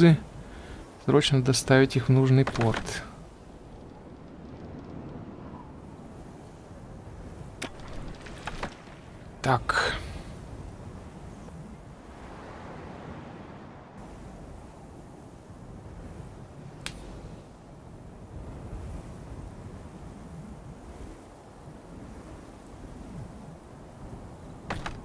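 Waves wash softly against a shore.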